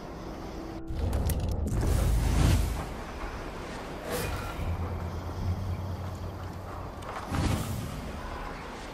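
A magical whoosh swoops past several times.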